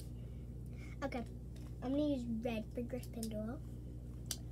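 A young girl speaks briefly and close by.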